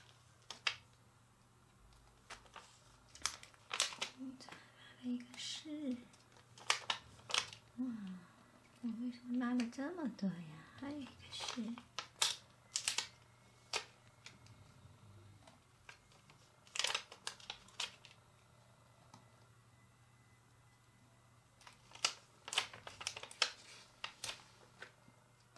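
A plastic sticker sheet crinkles and crackles in the hands.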